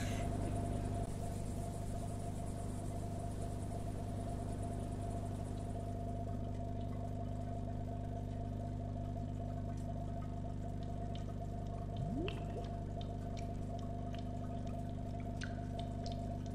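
An aquarium filter hums steadily.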